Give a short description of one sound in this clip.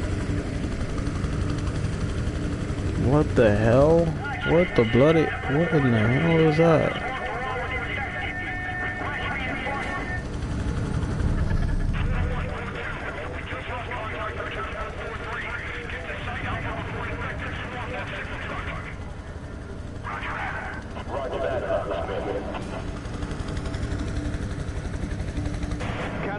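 Helicopter rotors whir steadily.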